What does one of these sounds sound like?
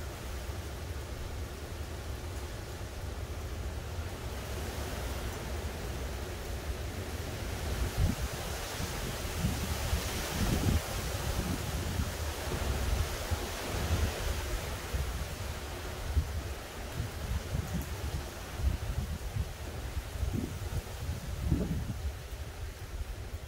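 Wind blows in gusts outdoors, rustling the leaves of trees.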